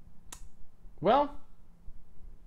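A man makes a short rising vocal sound close to a microphone.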